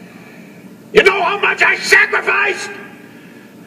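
A man speaks loudly and angrily, close by.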